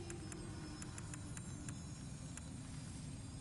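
Soft menu clicks tick as a selection cursor moves.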